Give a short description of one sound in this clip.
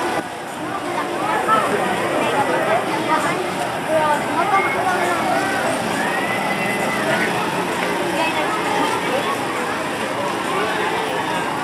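A large crowd of men and women murmurs and talks nearby.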